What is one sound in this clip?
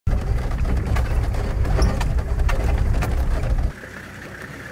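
A vehicle's engine rumbles as it drives over a rough track.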